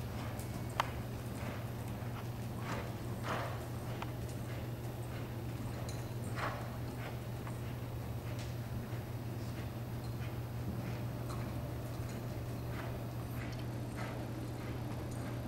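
Hooves thud softly on loose dirt at a slow, even walk.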